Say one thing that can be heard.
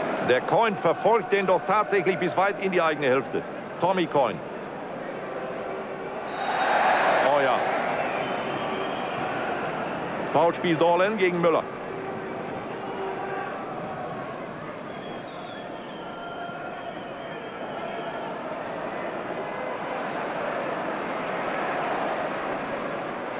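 A stadium crowd roars steadily in the distance, swelling into a louder cheer for a moment.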